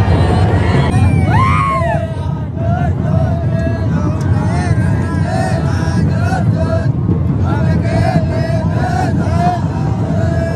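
Young men chant and shout together nearby.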